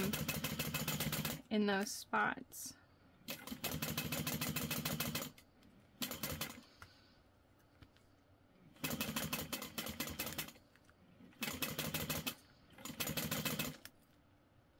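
A sewing machine stitches in quick bursts, stopping and starting.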